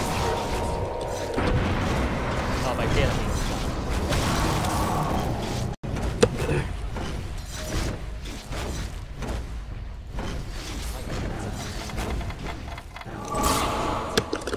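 Fighting sound effects clash, zap and crackle in quick bursts.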